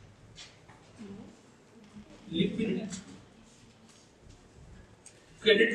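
A middle-aged man speaks calmly in a room, lecturing with pauses.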